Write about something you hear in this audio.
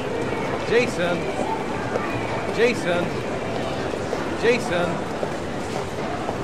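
A crowd murmurs softly in a large echoing hall.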